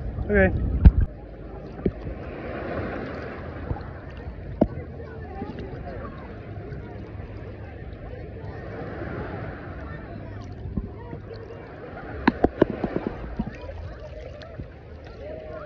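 Shallow water laps gently outdoors.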